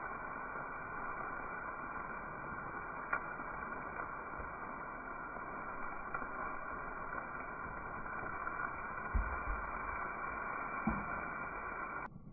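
Pieces of meat slide and thud into a metal wok.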